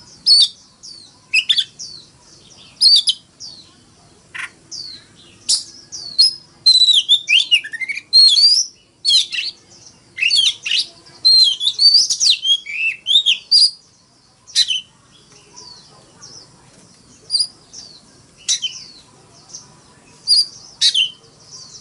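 A songbird sings loud, varied whistling phrases close by.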